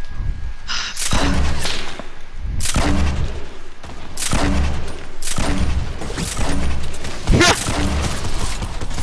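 Game gunshots fire in quick bursts.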